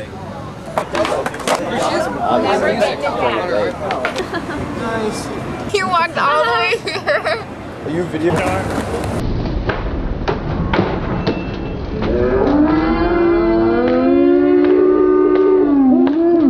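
A skateboard clacks on the pavement.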